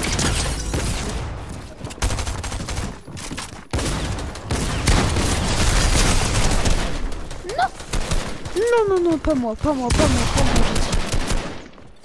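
Video game building pieces snap into place in rapid thuds.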